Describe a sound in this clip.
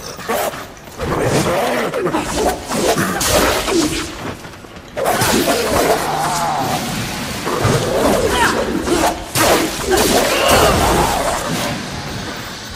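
Whip lashes and heavy blows crash in a fast fight.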